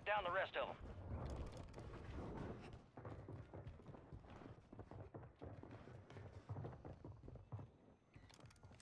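Footsteps thud quickly up stairs.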